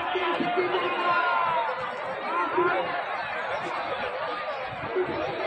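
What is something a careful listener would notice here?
A large outdoor crowd chatters and shouts with many overlapping voices.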